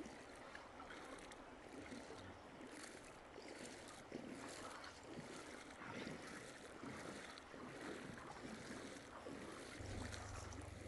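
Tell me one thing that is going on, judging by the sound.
Water flows and ripples nearby.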